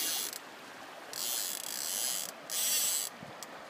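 A fish splashes in the water.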